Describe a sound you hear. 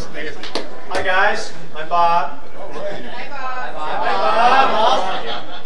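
A man speaks calmly into a microphone over a loudspeaker.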